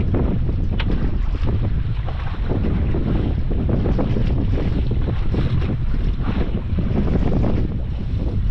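Waves slap and splash against the side of a small boat outdoors.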